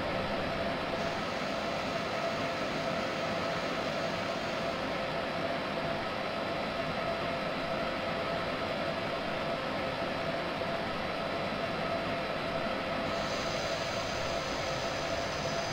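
An electric train hums and rumbles steadily along the rails.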